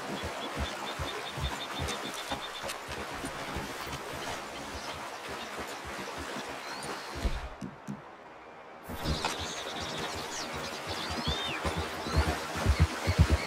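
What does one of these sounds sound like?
Water gurgles and flows over rocks.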